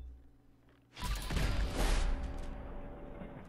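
A laser weapon fires with a loud burst.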